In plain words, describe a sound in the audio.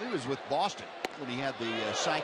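A baseball smacks sharply into a catcher's mitt.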